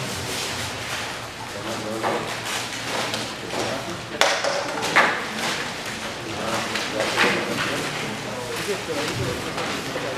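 Many men and women chatter at once in a large echoing room.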